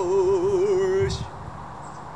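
A man sings a long wavering note close by.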